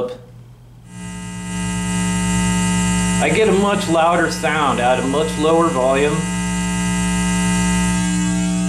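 An amplifier hums steadily.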